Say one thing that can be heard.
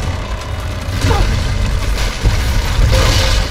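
Wooden planks splinter and crash.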